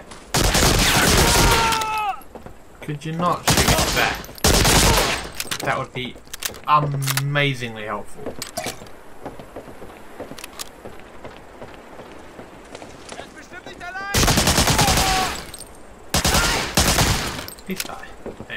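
A submachine gun fires loud bursts.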